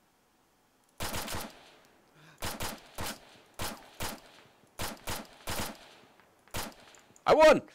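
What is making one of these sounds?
A rifle fires a series of sharp shots.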